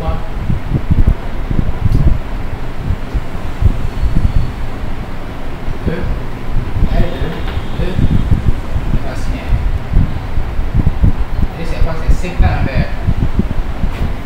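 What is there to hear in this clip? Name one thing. A man speaks calmly, as if explaining, close by.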